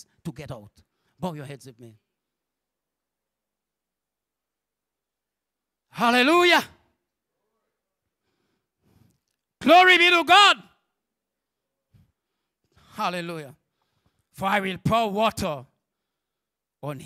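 A man preaches into a microphone with passion, in short bursts with pauses, heard through loudspeakers in a large hall.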